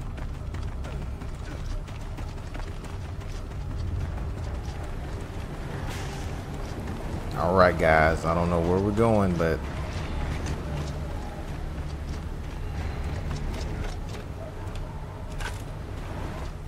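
Heavy armoured boots thud and crunch on rubble as a soldier runs.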